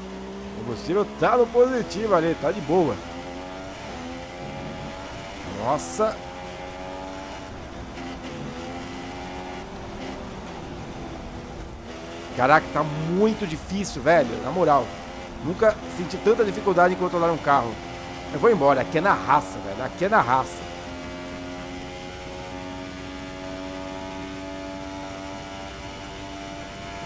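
A racing car engine whines at high revs, steadily rising and dropping in pitch through gear changes.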